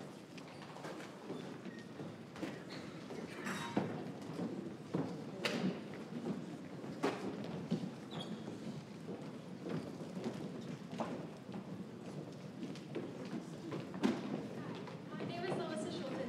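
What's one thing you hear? Footsteps shuffle across a wooden stage.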